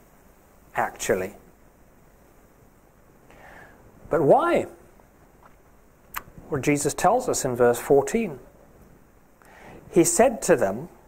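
A middle-aged man speaks slowly and deliberately through a microphone, with pauses, in a room with slight echo.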